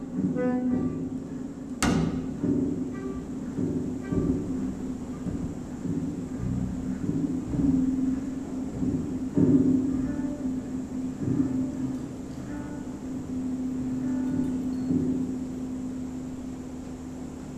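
A cello is bowed softly.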